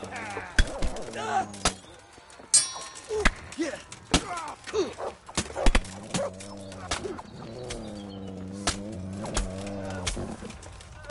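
Swords clash and clang in close combat.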